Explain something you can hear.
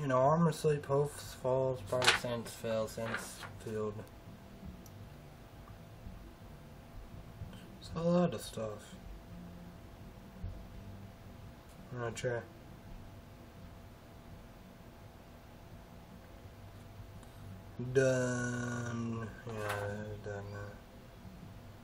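A young man talks casually, close to the microphone, with long pauses.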